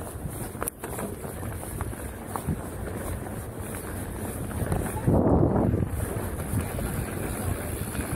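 A bicycle's frame and chain clatter over bumps.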